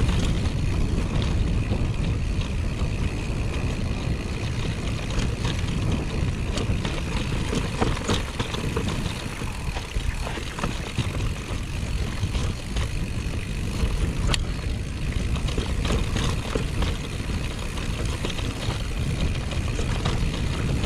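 A mountain bike's frame and chain rattle over bumps.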